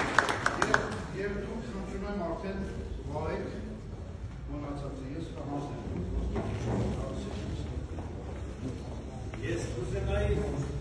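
A man speaks calmly in an echoing hall.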